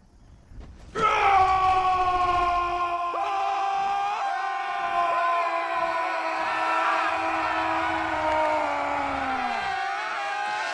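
A creature roars loudly and at length.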